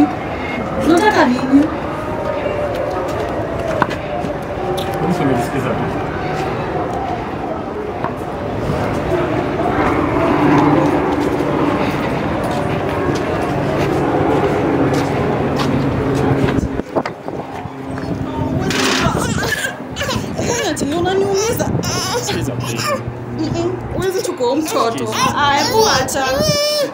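Young men talk with each other close by, outdoors.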